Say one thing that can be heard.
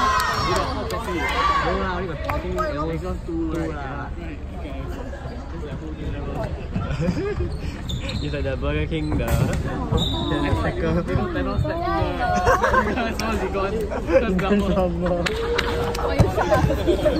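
A volleyball is struck with sharp thuds.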